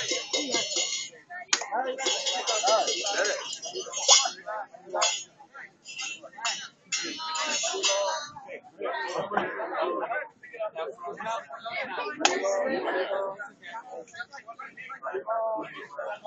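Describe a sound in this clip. A crowd of people talk and chatter nearby outdoors.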